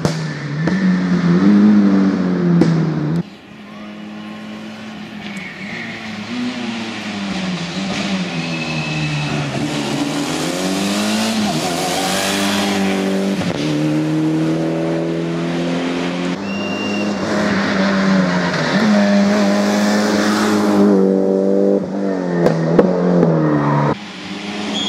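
A rally car engine roars loudly, revving up and down through gear changes as cars race past.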